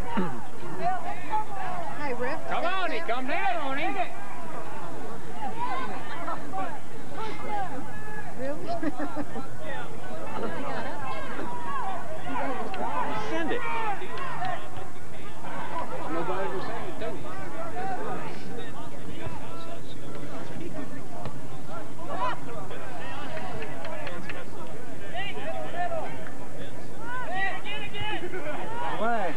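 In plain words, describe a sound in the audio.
A crowd of young people chatter and call out outdoors.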